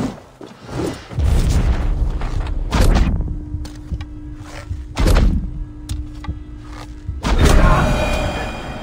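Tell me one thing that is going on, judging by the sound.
Heavy weapon blows strike with loud thuds.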